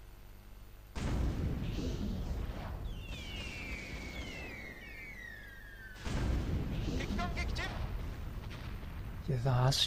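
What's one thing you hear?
Explosions boom in heavy bursts.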